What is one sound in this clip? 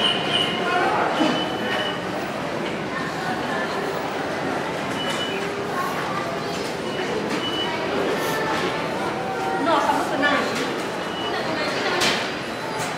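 A crowd of people murmurs and talks in a large indoor space.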